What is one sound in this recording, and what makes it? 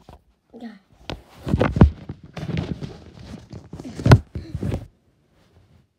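Loud rubbing and knocking bursts close by as the phone is handled.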